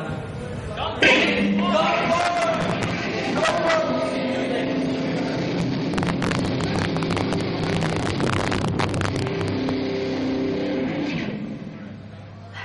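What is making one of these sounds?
A rock band plays loudly.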